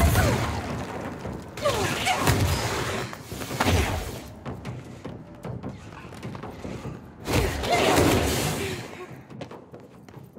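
Heavy blasts boom and rumble.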